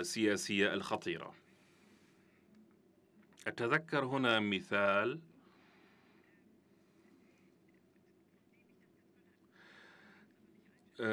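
A young woman speaks calmly into a microphone, in short phrases with pauses.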